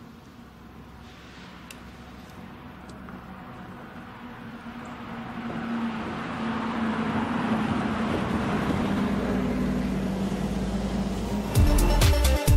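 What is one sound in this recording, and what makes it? A bus engine rumbles as it approaches and drives past.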